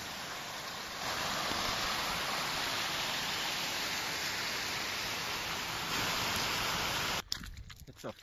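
A mountain stream rushes over stones.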